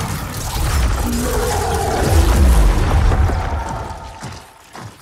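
A monster roars loudly and deeply.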